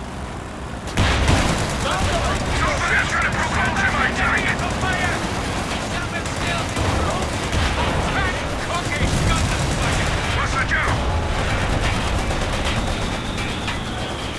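Gunfire rattles in a battle.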